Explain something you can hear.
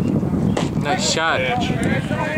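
A pitched baseball smacks into a catcher's leather mitt.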